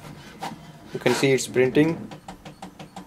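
A printer's rollers whir and rasp briefly as a page slides out.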